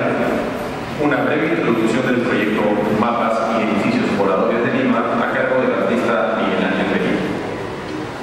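A man speaks calmly into a microphone over a loudspeaker in an echoing hall.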